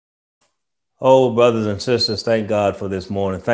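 A man speaks warmly into a microphone.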